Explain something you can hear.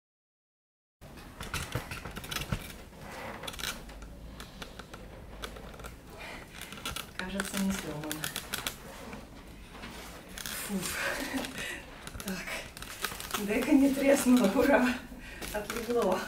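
Cardboard rustles and bumps.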